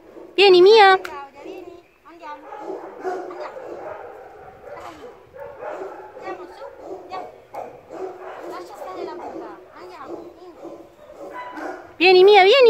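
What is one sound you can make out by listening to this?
A small dog howls loudly.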